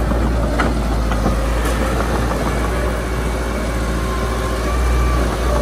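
Metal tracks clank and squeal as a bulldozer crawls forward.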